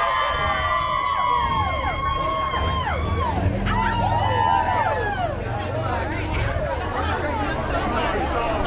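A large crowd of men and women cheers and whoops loudly outdoors.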